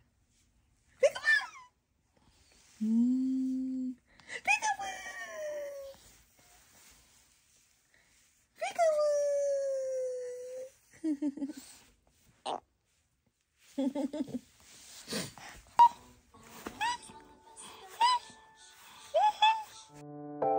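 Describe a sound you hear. A baby babbles and laughs up close.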